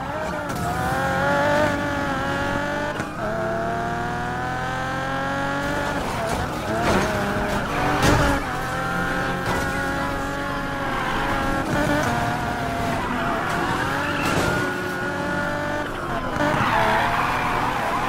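Tyres screech as a car drifts around bends.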